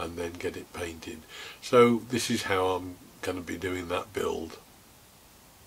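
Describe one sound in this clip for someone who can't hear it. An older man speaks calmly and close up.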